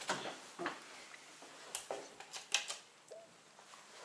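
A light switch clicks.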